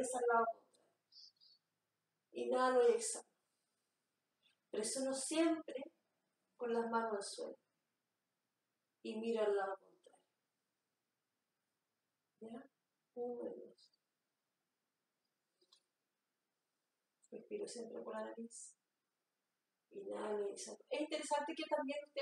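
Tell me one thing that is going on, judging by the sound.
A woman speaks calmly and slowly, with long pauses, close to the microphone.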